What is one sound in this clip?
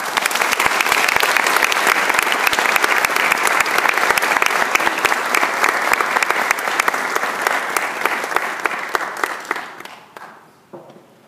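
An audience claps loudly in an echoing hall, then the applause fades away.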